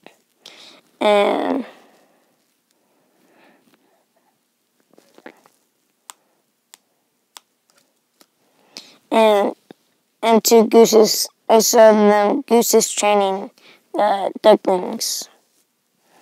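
A young boy talks close to the microphone, with animation.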